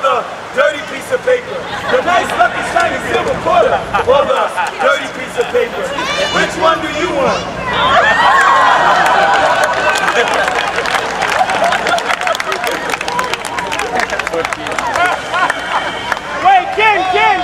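A man talks loudly and with animation to a crowd outdoors.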